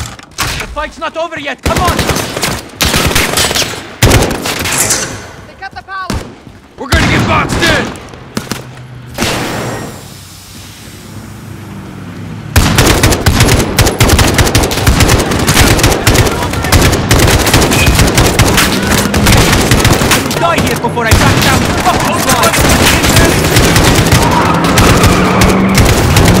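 Rifles fire in rapid bursts, loud and close.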